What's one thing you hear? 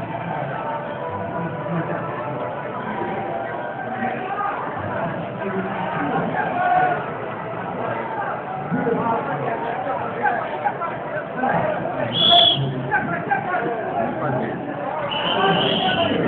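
Men and women talk loudly nearby.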